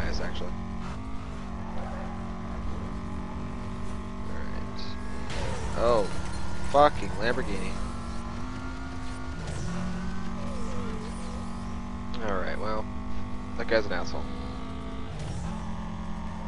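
A racing car engine briefly drops in pitch as it shifts gear.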